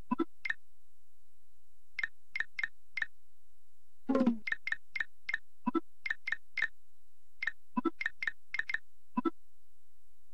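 Soft chimes sound as letters are picked and deleted.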